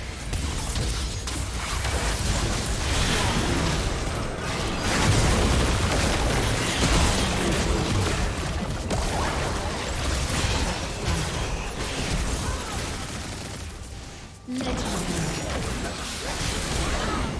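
Spell effects whoosh, crackle and clash during a busy battle.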